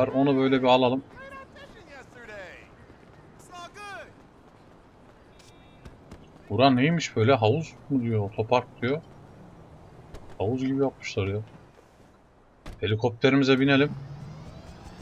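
A young man talks with animation into a microphone, in short bursts.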